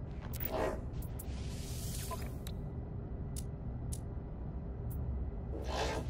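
Short electronic clicks sound as menu options are selected.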